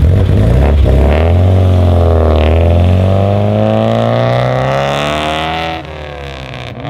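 A car engine revs up loudly and climbs in pitch as the car pulls away.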